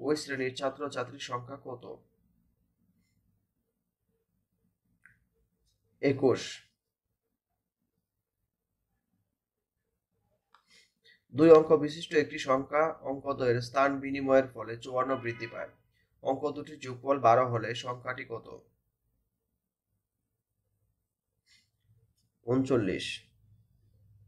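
A man speaks calmly and clearly into a close microphone, in short bursts with pauses.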